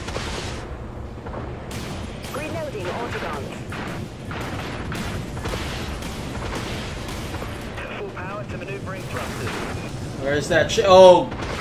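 Spaceship guns fire in rapid bursts.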